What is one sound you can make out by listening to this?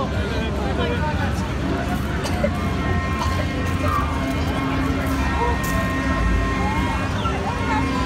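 Screams rise from riders on a swinging ride.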